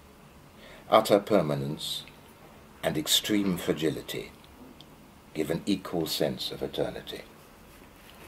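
An elderly man speaks calmly and thoughtfully, close by.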